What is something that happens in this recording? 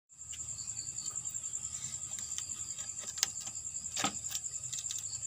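Pieces of bamboo knock and click together as hands handle them.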